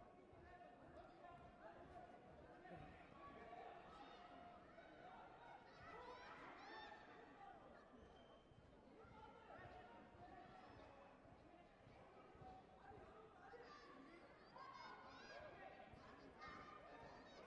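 A crowd of men and women murmurs and chatters in a large echoing hall.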